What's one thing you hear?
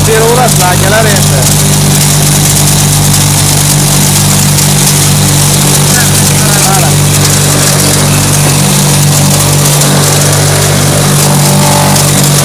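An electric motor hums loudly and steadily.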